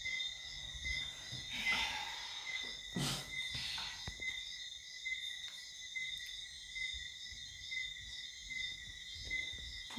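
A phone speaker plays a steady, softly pulsing electronic tone.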